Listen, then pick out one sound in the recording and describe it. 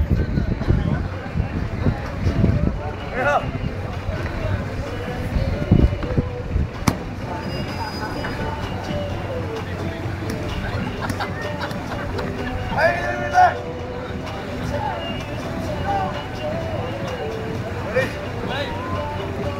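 A crowd of people chatter and laugh outdoors nearby.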